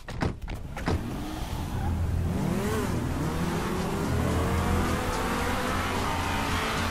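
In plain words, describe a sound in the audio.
Car engines rev loudly and race away.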